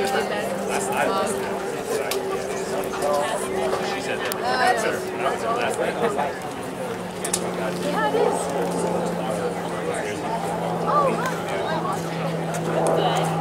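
Boys and young men chatter and call out to each other outdoors.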